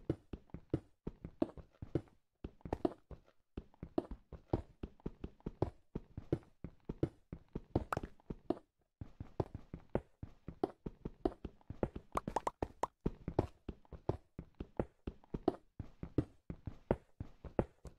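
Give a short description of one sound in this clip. A pickaxe chips rapidly at stone blocks, with crumbling thuds.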